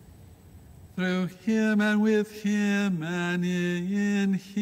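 A man chants in a sustained singing voice through a microphone, in an echoing room.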